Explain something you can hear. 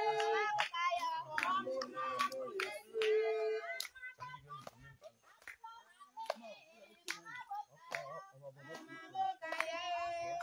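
Men sing together close by.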